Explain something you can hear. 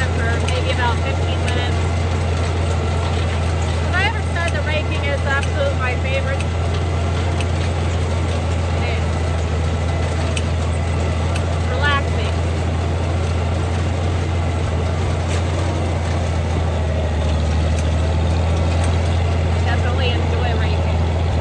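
A tractor engine drones steadily close by.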